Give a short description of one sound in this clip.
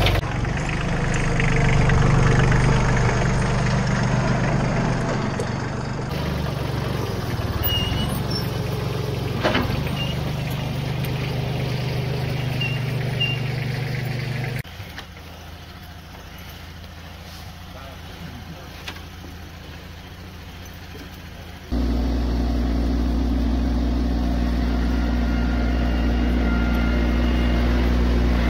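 A small tractor engine chugs loudly close by.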